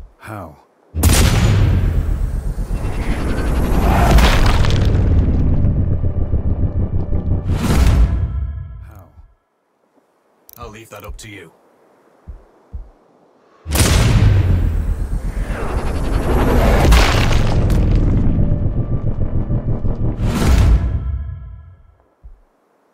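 A rifle fires with a loud boom that rumbles away.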